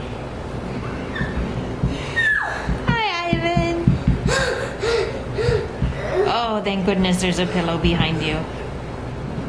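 A young boy shouts and squeals excitedly close by.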